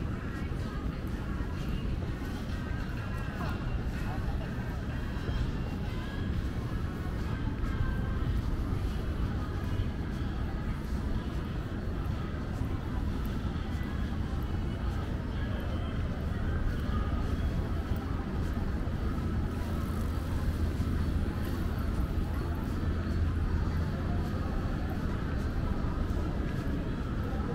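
Footsteps tap on paving nearby.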